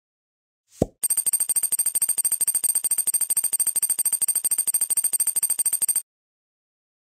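A small electric drill whirs in rapid pulses.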